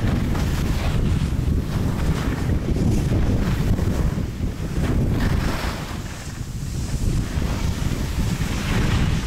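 Wind rumbles and buffets loudly.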